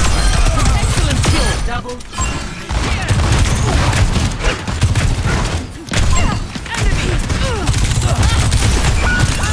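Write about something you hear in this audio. An energy beam weapon fires with a crackling hum.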